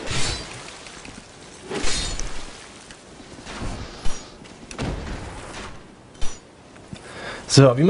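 Swords clash and strike in a game fight.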